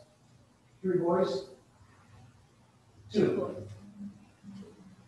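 A middle-aged man speaks with emphasis through a microphone in a room with some echo.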